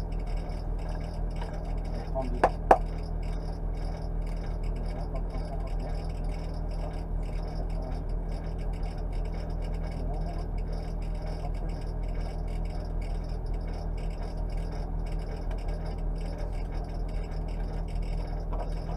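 A car engine idles steadily, heard from inside the cabin.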